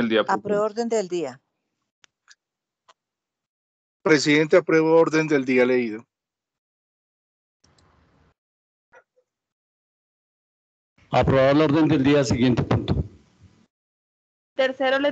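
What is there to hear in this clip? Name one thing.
An older man speaks in short bursts through an online call, with pauses between.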